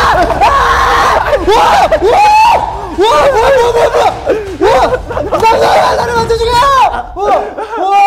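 A young man screams in fright close by.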